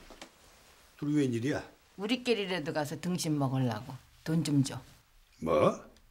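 An elderly man speaks firmly close by.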